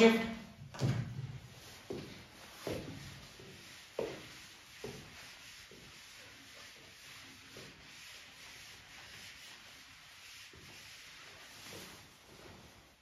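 A board eraser rubs across a chalkboard.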